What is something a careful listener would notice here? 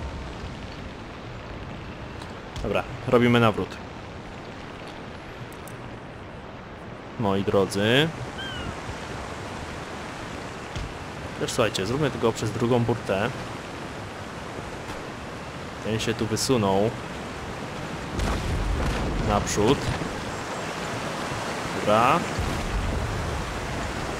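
Sea waves wash steadily.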